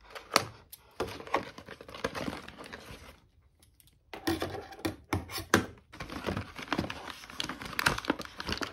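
Plastic and cardboard packaging crinkles and rustles as it is handled.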